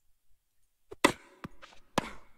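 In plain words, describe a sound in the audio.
A tennis ball is struck with a racket.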